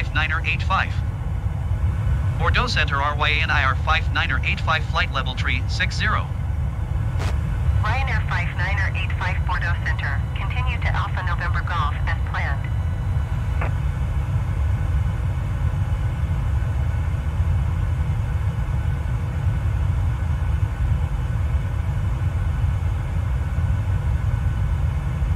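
A jet engine drones steadily in flight.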